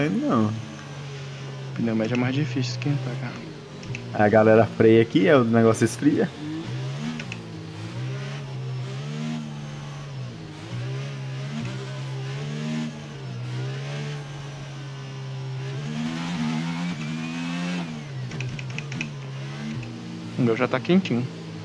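A racing car engine drones steadily, rising and falling in pitch as it revs.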